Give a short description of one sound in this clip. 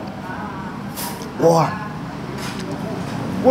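A man slurps noodles close to a microphone.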